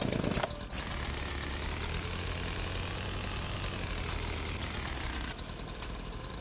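A chainsaw engine idles with a low rumble.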